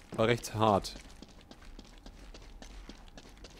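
Footsteps run on a hard floor.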